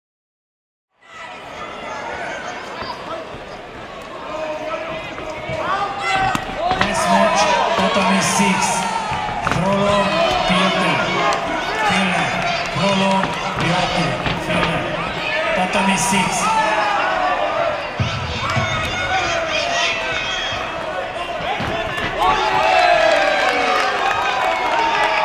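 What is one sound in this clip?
Spectators and coaches shout and cheer in an echoing hall.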